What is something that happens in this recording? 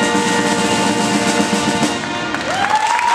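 A brass band plays a sustained chord in a large echoing hall.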